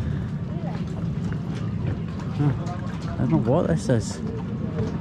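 A boat's engine rumbles low and steady.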